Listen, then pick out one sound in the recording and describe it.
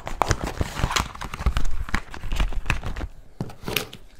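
A cardboard box rustles and taps as hands handle it.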